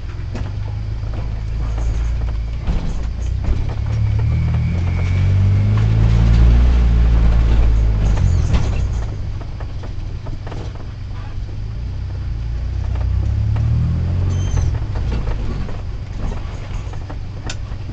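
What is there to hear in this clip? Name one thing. Tyres crunch over rough ground.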